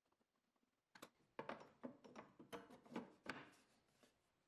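A wooden plate knocks and clatters as it drops into place on a metal table.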